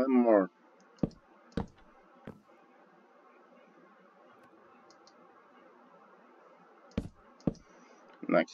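Wooden blocks are placed with short, soft knocks.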